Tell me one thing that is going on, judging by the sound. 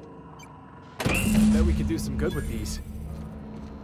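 A heavy metal door hisses and clanks open.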